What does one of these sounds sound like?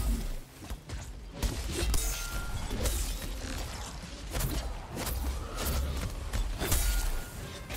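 Weapons strike a large beast with sharp impacts.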